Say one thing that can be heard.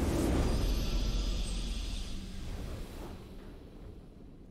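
A victory fanfare swells loudly and fades away.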